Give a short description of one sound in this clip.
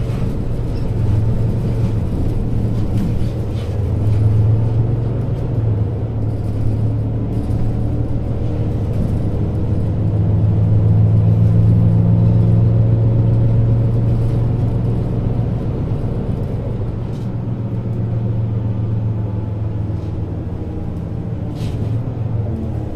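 A bus engine drones low and steady from inside the moving vehicle.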